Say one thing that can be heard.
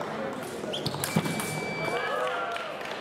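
An electronic scoring machine beeps steadily for about a second.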